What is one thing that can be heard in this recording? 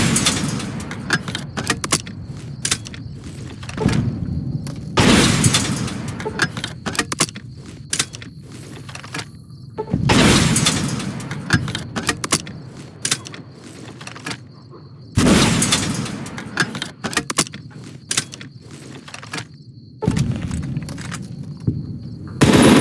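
Metal parts click and clatter as a launcher is reloaded.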